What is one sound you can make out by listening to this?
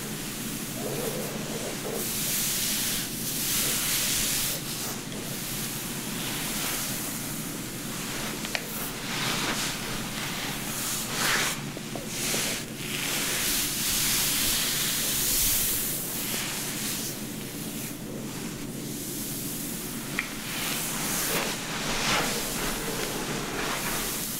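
Hands brush and rustle through long hair close up.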